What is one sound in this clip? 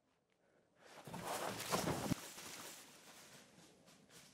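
Leaves and grass rustle as a young man pushes through undergrowth.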